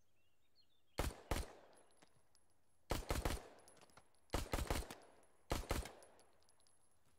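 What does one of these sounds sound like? A pistol fires single shots that echo outdoors.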